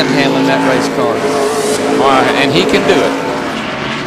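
Race cars whoosh past one after another.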